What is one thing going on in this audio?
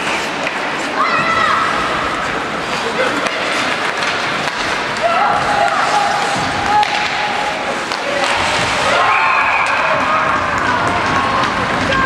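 Spectators shout and cheer in a large echoing arena.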